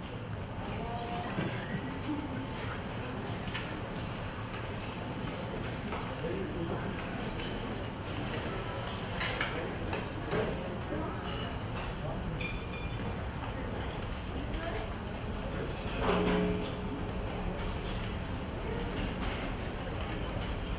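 A live band plays in a room.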